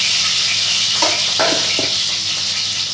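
Metal tongs clack against a plate.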